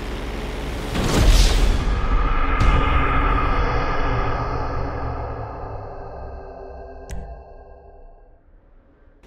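A plane crashes with a loud explosive boom that rings out and slowly fades.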